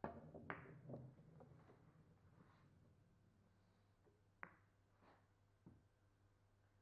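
A billiard ball thumps against a cushion.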